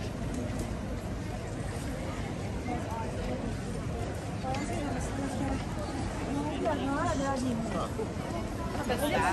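Footsteps patter on paving stones.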